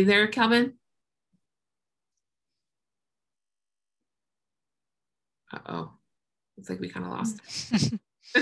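A woman speaks calmly over an online call, with long pauses.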